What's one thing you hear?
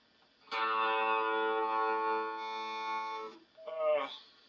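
An electric keyboard plays a sustained chord.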